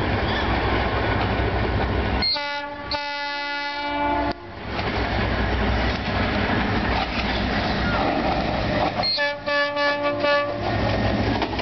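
A diesel locomotive rumbles as it approaches.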